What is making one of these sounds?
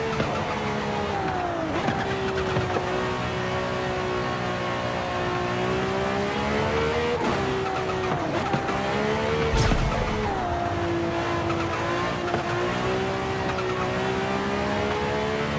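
A racing car engine drones steadily, its pitch rising and falling as it shifts gears.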